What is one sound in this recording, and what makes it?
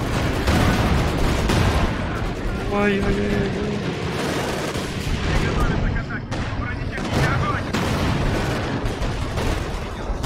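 Explosions boom and thud repeatedly.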